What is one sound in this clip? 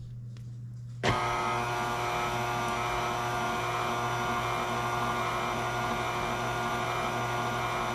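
A stand mixer whirs steadily as its whisk beats batter.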